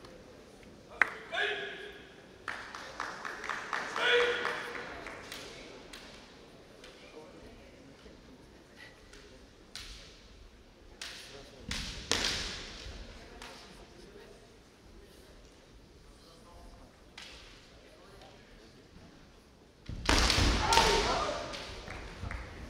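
A young man shouts sharp, loud cries in a large echoing hall.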